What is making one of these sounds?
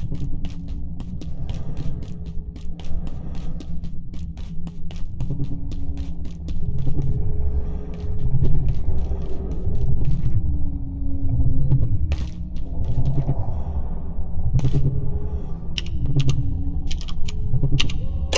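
Footsteps clack quickly on a hard metal floor.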